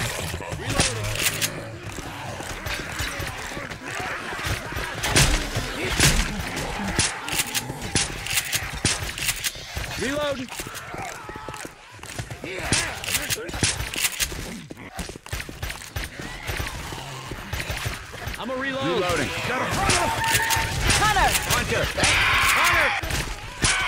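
A gun fires in rapid bursts of sharp shots.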